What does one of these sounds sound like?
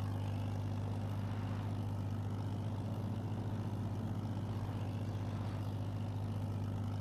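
A small tractor engine chugs steadily at low speed.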